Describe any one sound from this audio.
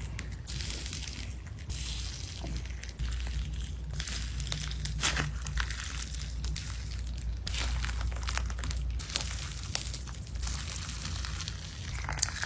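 Sticky slime squelches and pops under fingers.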